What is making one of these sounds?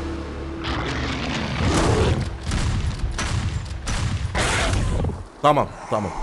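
Gunfire bursts rapidly and loudly.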